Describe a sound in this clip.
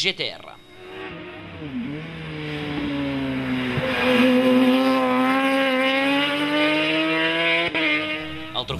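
A race car engine roars loudly as the car speeds past.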